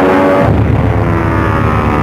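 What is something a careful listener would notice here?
A plane explodes with a loud burst.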